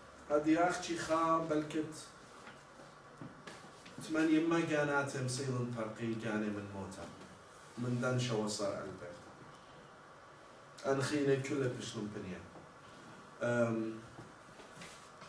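A man speaks calmly in a room, heard through a microphone, pausing between phrases.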